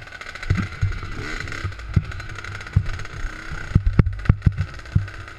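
A dirt bike engine buzzes steadily.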